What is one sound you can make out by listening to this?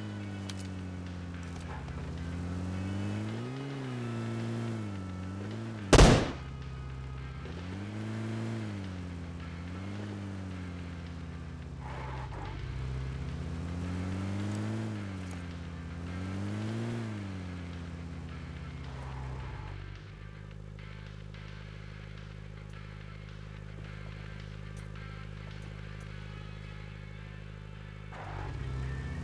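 A vehicle engine hums and revs up and down as it drives.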